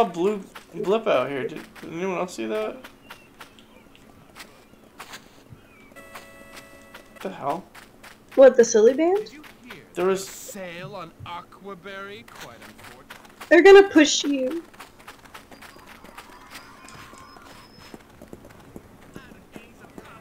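Quick footsteps run on sand.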